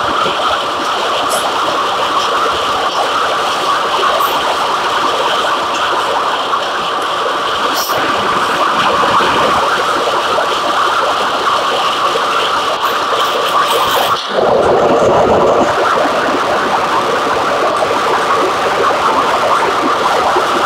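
A bus engine idles steadily.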